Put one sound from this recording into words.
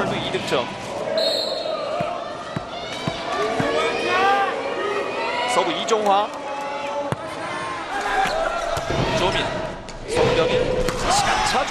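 A large crowd cheers and chants in an echoing hall.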